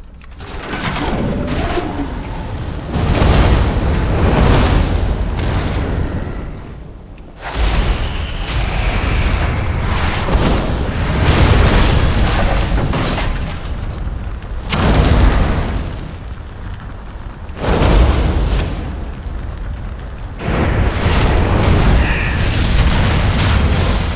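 Fiery spell blasts roar and crackle in bursts.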